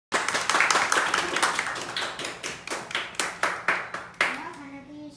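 A small group of people applauds, clapping briskly nearby.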